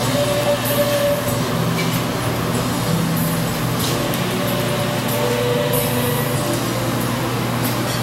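A man sings into a microphone through loudspeakers in an echoing room.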